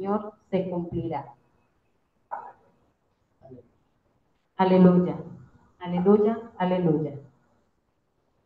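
A woman sings into a microphone, heard through a loudspeaker.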